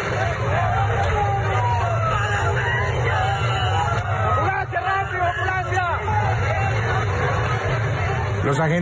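A crowd of men shouts and clamours outdoors.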